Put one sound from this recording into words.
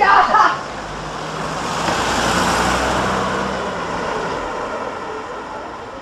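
A car passes close by with a rising and fading whoosh.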